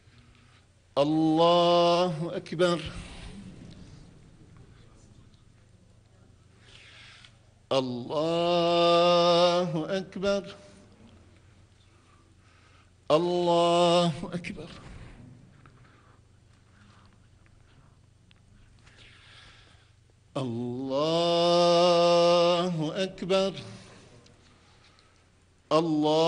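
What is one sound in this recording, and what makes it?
An elderly man chants loudly through a loudspeaker in short sung phrases, echoing in a large hall.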